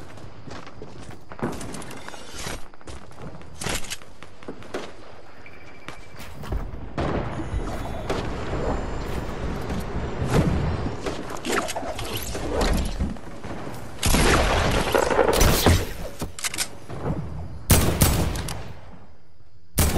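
Wooden walls and ramps are built with quick hammering knocks.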